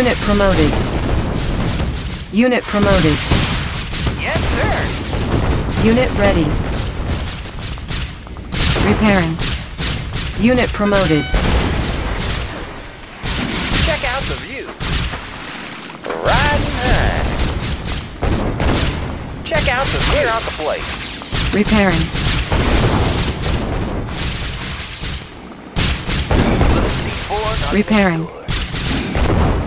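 Explosions boom and crackle as units battle.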